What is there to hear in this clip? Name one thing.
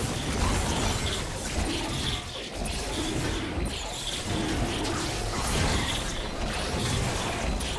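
Magic spell effects whoosh and crackle in a video game.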